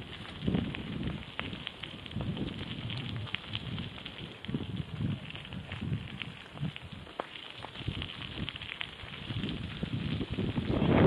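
Wind rumbles in gusts outdoors.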